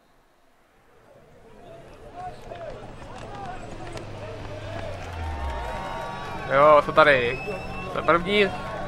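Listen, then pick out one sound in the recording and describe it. A rally car engine idles with a low rumble.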